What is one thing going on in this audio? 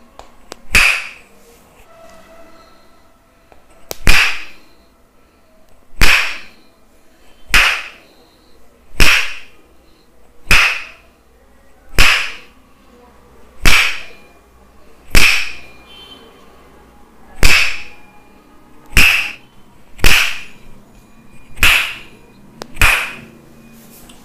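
A wooden mallet knocks sharply on a wooden peg pressed to a man's back, in slow, steady blows.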